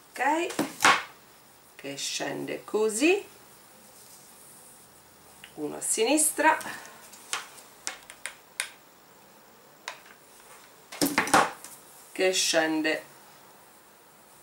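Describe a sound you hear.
Fabric rustles softly as hands fold and handle it.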